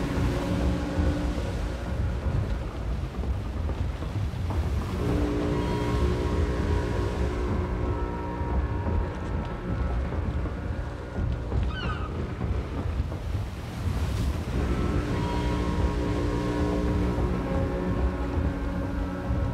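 Waves wash and churn against a ship's hull.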